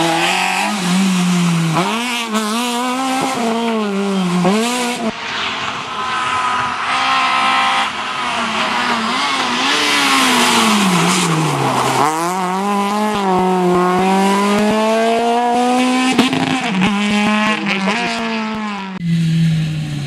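A rally car engine revs hard, rising and falling in pitch as it shifts gears.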